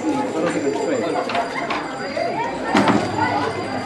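A brass band plays a lively tune.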